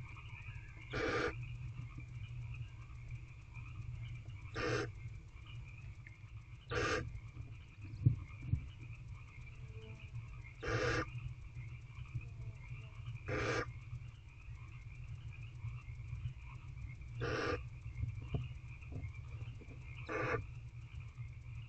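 A barn owl hisses in short, repeated bursts close by.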